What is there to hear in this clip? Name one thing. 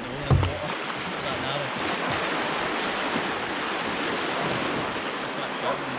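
Small waves rush and splash against a kayak.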